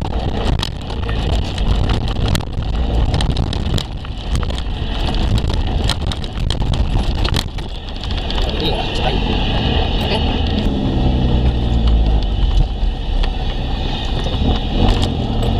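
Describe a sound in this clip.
A car engine rumbles, heard from inside the car.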